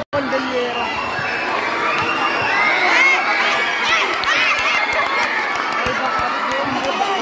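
A large crowd of children and adults chatters and shouts outdoors.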